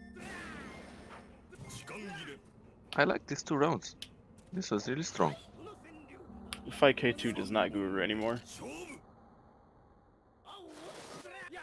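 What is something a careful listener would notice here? Video game sword slashes and hit effects ring out.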